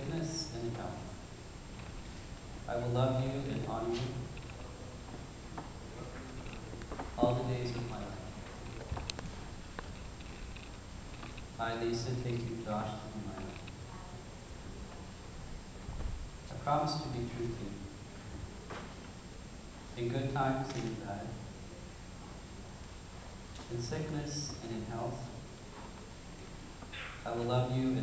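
A man speaks slowly and solemnly in short phrases.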